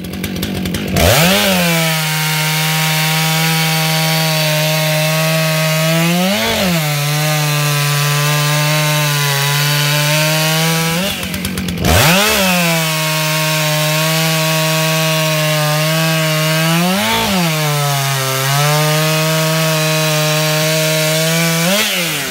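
A chainsaw roars loudly as it cuts through a log, with its engine revving up and down.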